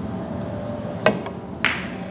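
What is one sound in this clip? A cue sharply strikes a billiard ball.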